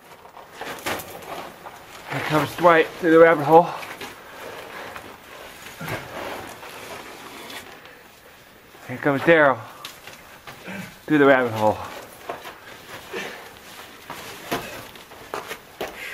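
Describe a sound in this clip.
Footsteps scuff on sand and rock.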